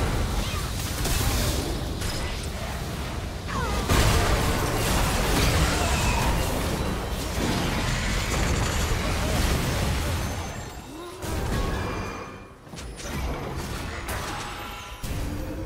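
Magic spells burst and crackle in a busy battle.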